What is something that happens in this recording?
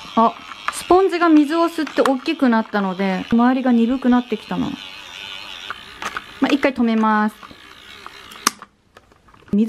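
A small toy motor whirs steadily.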